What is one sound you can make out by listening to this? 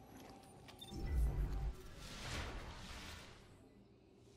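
A shimmering whoosh swells as a character reappears.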